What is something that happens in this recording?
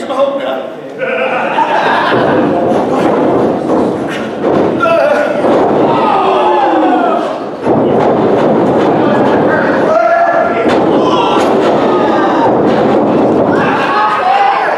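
A crowd cheers and roars loudly in a large echoing hall.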